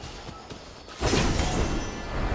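A sword slashes with a sharp swoosh.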